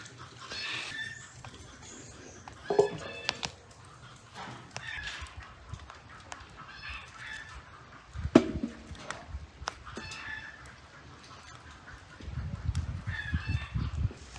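A knife slices through soft strawberries with quiet clicks.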